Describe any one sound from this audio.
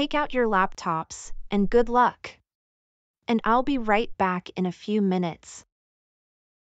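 A woman speaks calmly in a level, synthetic-sounding voice.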